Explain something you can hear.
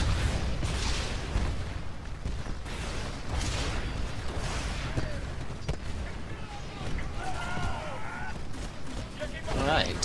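Rapid gunfire rattles with heavy low booms.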